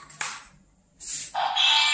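A toy lightsaber hums and buzzes with electronic effects.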